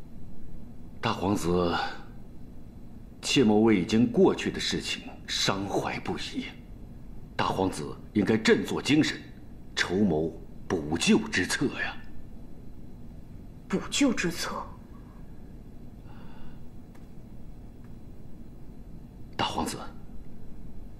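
A middle-aged man speaks calmly and earnestly close by.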